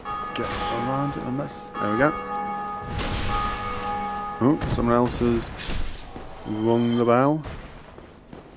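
Metal weapons clash and strike.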